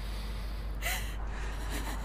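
A young woman sobs softly nearby.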